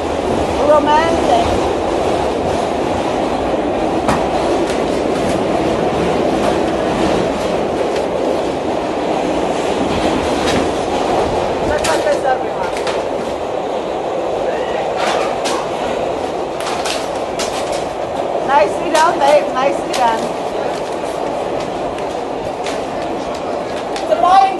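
A subway train rumbles along steadily.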